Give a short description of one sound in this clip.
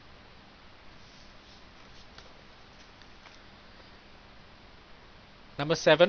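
Paper rustles as a sheet is turned over.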